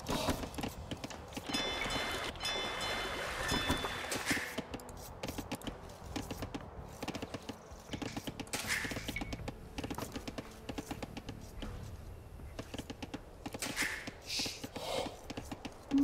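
Tiny tapping and chopping sounds of a strategy game's workers ring out.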